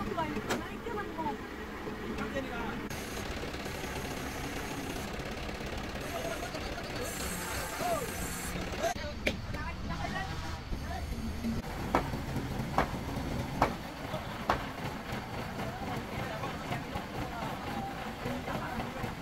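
A crane engine rumbles steadily.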